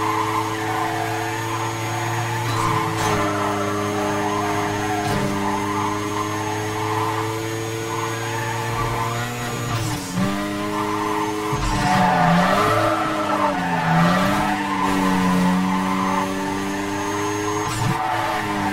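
A racing car engine roars at high revs, shifting pitch as the car speeds up and slows.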